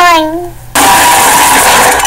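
A young girl shouts.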